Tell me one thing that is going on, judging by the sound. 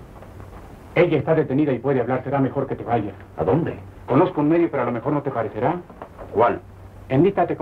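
Another man speaks quietly nearby.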